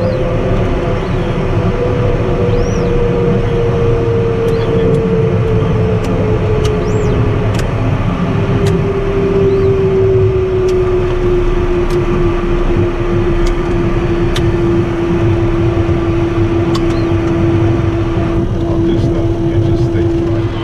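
Tyres rumble on a runway.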